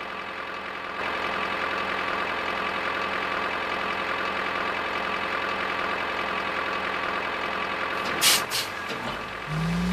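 A cartoon truck engine hums steadily.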